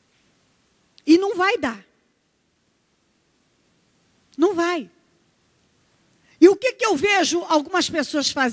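A woman speaks with animation into a microphone, heard through a loudspeaker, with pauses between phrases.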